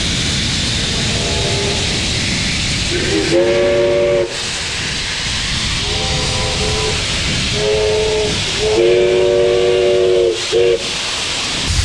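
A steam whistle sounds in several loud blasts.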